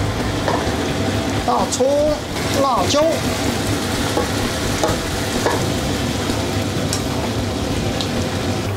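A thick stew bubbles and sizzles in a pan.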